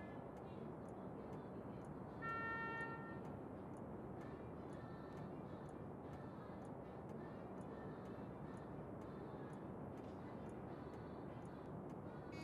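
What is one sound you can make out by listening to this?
Rain patters steadily outside a window.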